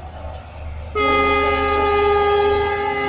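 A diesel locomotive horn blares loudly.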